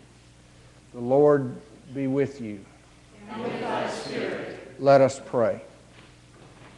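A man chants alone in a clear singing voice.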